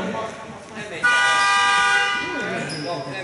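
A referee blows a shrill whistle.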